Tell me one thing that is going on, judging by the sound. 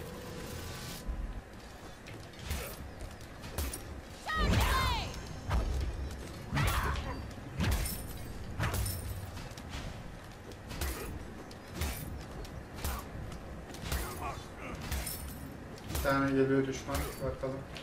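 Magic effects whoosh in a video game.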